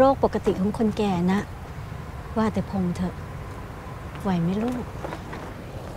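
A woman speaks softly and emotionally nearby.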